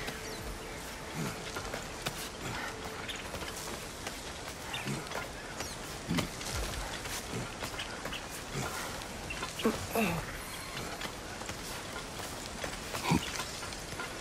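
Hands and boots scrape and knock on rock as a climber pulls upward.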